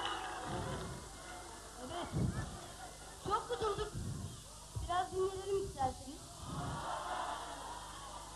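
A band plays music on stage.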